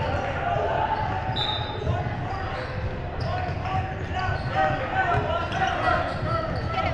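Sneakers squeak on a wooden court.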